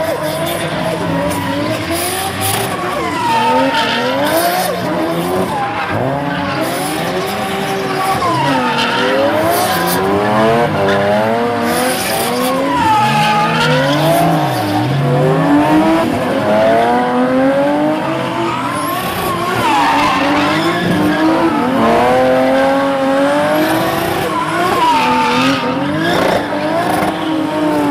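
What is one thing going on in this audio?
Tyres squeal and scrub on asphalt.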